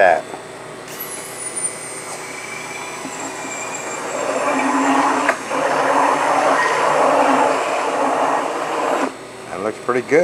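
An electric hand mixer whirs as it beats eggs.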